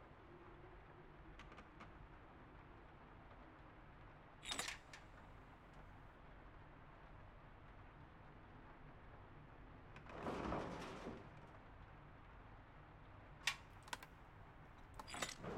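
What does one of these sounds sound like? A dial on a mechanical lock clicks as it turns.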